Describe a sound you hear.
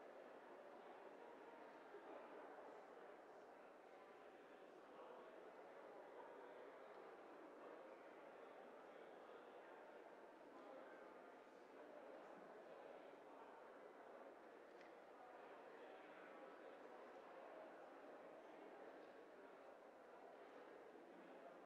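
Many people chatter at once in a large echoing hall.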